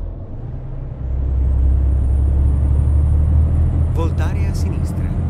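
A truck engine roars louder as the truck speeds up.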